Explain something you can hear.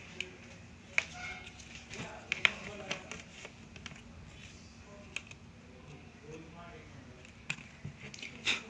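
Hands tap and click plastic parts of a laptop.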